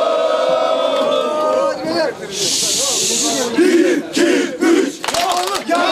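A crowd of fans claps their hands.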